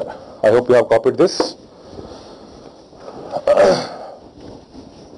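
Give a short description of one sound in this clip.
A man speaks in short bursts, close to a microphone, lecturing calmly.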